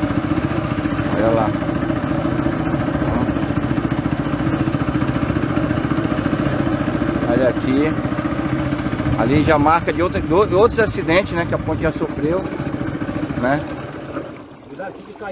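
A boat motor hums steadily and then fades away.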